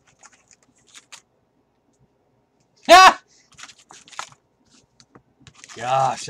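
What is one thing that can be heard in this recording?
Foil card packs rustle as they are stacked by hand.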